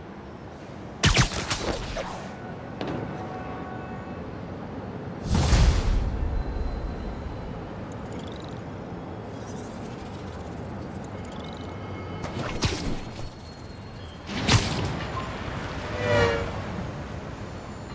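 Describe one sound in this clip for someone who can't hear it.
Wind rushes past in quick whooshes during fast swings through the air.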